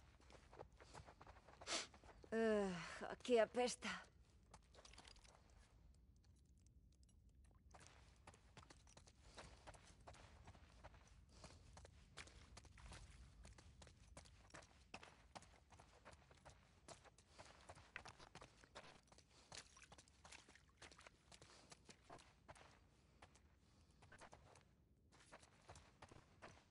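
Footsteps tread on a hard floor with a faint echo.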